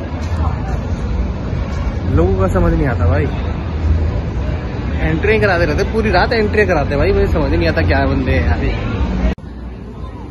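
A man talks close by in a low voice.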